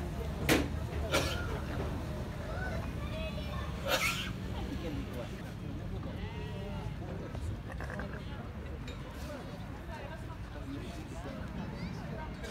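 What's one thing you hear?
A flock of sheep bleat loudly and often, close by.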